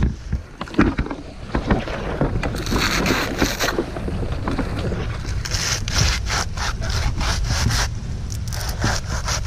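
Dry palm fronds rustle and crackle as they are pulled and cut.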